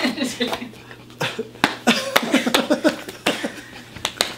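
Hands slap against a body.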